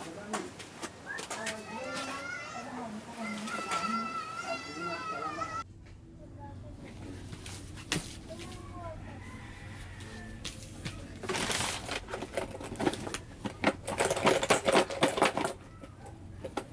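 Objects knock and clatter lightly on a wooden shelf.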